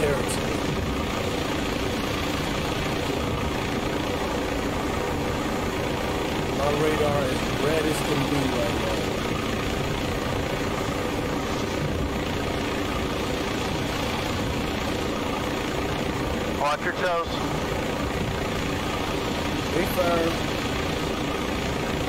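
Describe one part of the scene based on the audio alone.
A helicopter's rotor thrums steadily and loudly.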